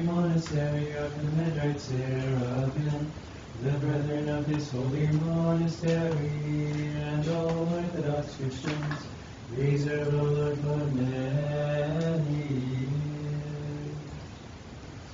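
Men chant together in a slow, steady drone, echoing in a room.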